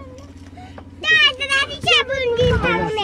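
A small child babbles and squeals close by.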